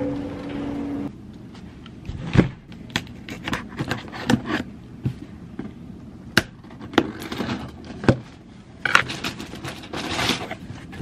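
A cardboard box bumps and scrapes as it is handled.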